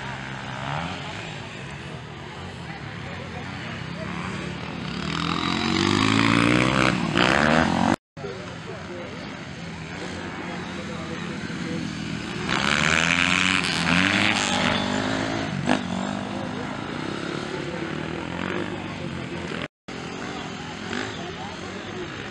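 Dirt bike engines rev and whine loudly.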